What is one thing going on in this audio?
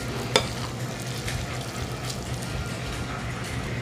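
A spoon scrapes and clicks against a bowl while stirring a thick mixture.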